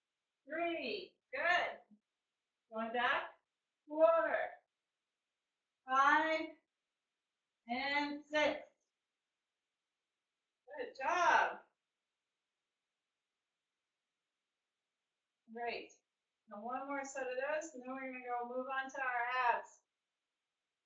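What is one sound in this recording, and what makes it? A middle-aged woman talks calmly and close by, in short phrases.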